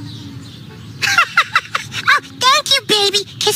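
A high, squeaky puppet voice talks with excitement, close by.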